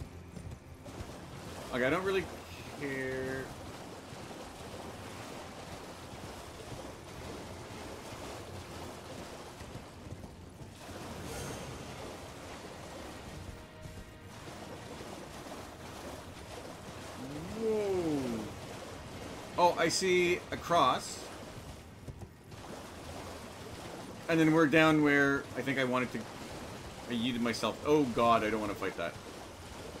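A horse gallops and splashes through shallow water.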